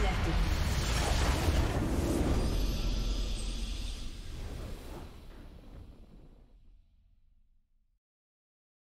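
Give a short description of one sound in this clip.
A triumphant victory fanfare swells and then fades away.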